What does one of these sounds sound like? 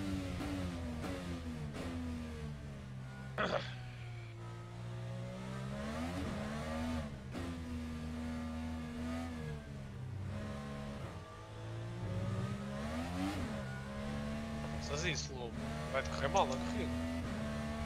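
An open-wheel racing car engine revs hard and shifts through its gears.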